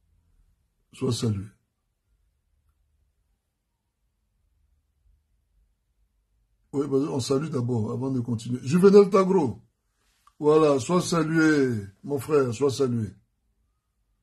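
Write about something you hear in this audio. A man speaks calmly and close to a microphone, in short bursts with pauses.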